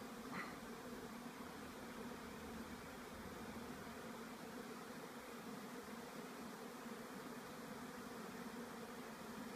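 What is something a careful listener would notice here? Swarms of bees buzz steadily all around, up close.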